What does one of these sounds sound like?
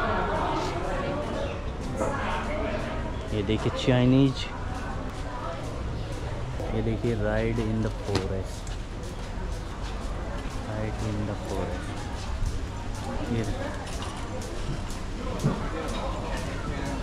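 Men and women talk nearby outdoors.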